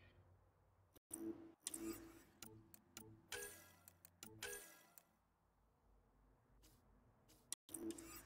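Soft interface clicks and beeps sound in short bursts.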